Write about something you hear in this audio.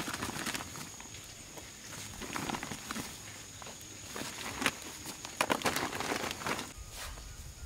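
Small round fruits rattle and roll together in a woven basket.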